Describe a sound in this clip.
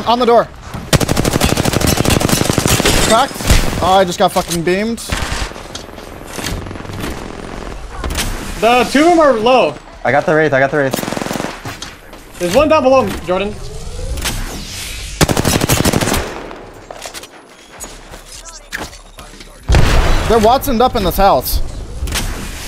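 Rapid gunfire bursts in quick bangs.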